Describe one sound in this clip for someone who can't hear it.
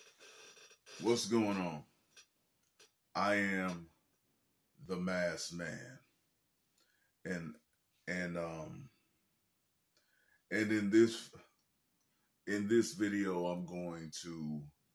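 A young man speaks calmly and close up, in short phrases with pauses.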